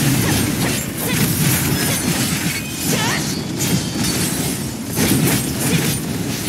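Game blasts and explosions crash and boom rapidly.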